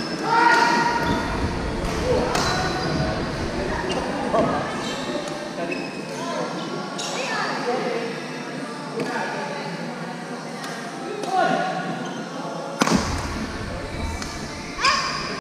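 Racquets strike a shuttlecock with sharp pops in an echoing hall.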